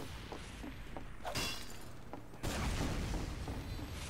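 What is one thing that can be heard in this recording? Metal clanks as a wrench strikes.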